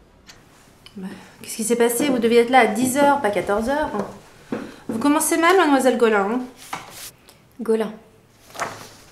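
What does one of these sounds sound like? A woman speaks briskly and firmly, close by.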